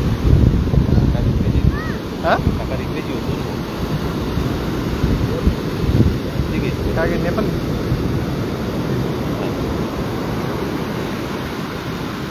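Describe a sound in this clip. Wind blows outdoors against the microphone.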